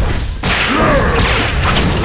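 An explosion bursts with a loud boom.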